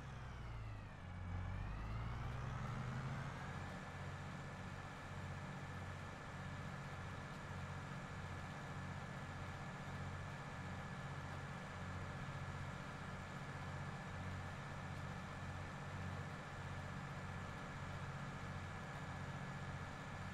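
A high whine from the tractor's drive rises and then holds steady.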